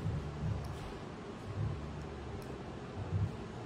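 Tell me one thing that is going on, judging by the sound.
A screwdriver turns a small screw.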